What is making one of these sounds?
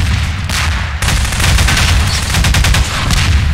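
An energy weapon fires with a loud crackling buzz.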